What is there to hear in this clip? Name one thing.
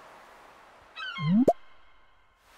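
A short rising chime plays as an item is picked up.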